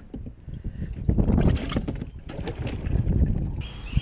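A cooler lid thuds shut.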